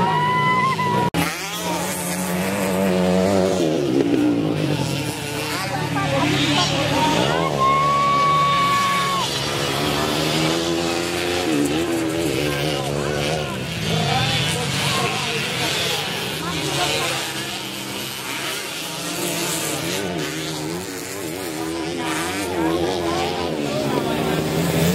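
Dirt bike engines rev and whine up and down close by.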